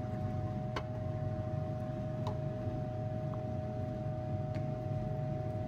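A plastic container clicks and rattles as it is handled.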